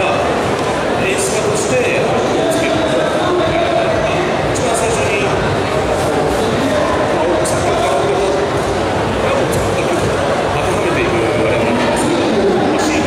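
A man speaks steadily through a microphone over loudspeakers in an open, echoing space.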